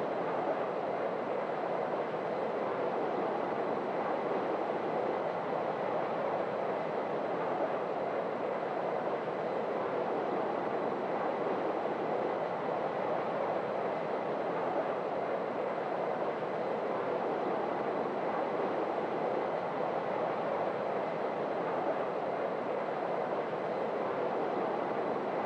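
Jet engines roar steadily from inside a cockpit.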